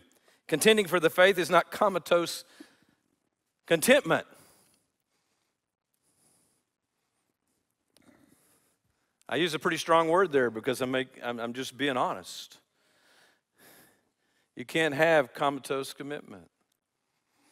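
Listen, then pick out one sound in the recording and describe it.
An older man speaks calmly into a microphone in a large echoing hall, with pauses between phrases.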